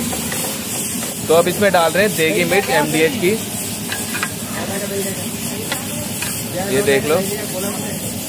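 A spatula scrapes and stirs wet meat and cabbage in a metal pot.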